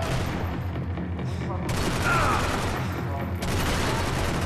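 Pistol shots ring out in a large echoing hall.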